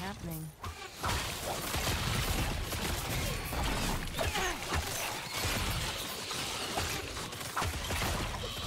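Spells explode and crackle in a dense, constant game battle.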